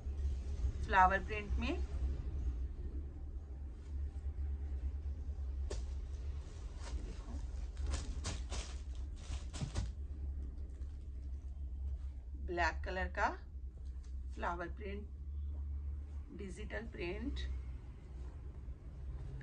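Fabric rustles and swishes.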